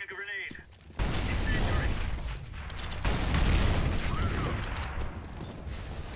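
Flames from a firebomb roar and crackle.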